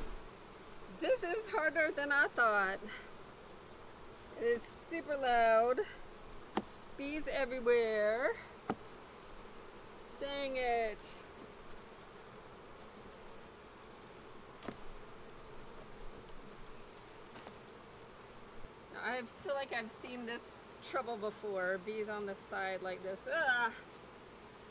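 A young woman speaks calmly, close by, outdoors.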